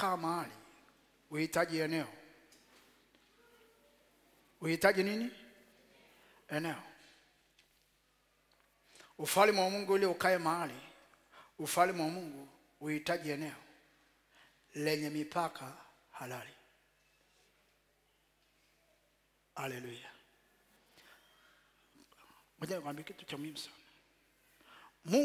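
A man preaches forcefully into a microphone, in short bursts with pauses.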